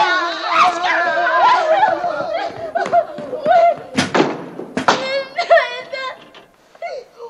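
A young woman shouts excitedly.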